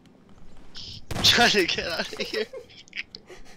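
A shotgun fires a single loud blast.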